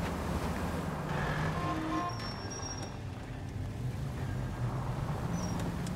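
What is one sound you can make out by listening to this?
Tyres screech on the road as a car turns sharply.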